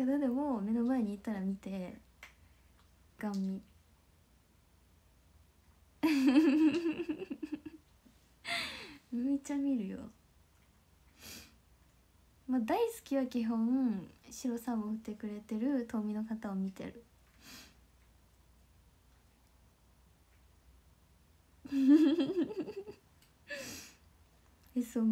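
A young woman speaks softly and playfully close to a microphone, with pauses.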